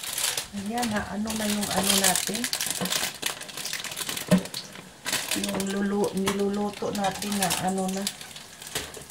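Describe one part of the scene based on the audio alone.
A young woman sings in a steady voice close by.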